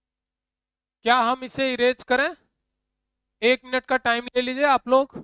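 A man speaks with animation, close by and clear.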